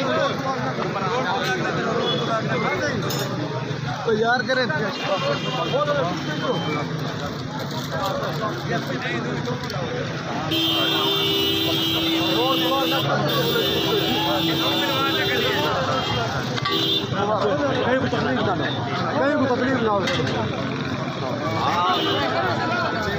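A crowd of men talks and shouts excitedly all around, close by.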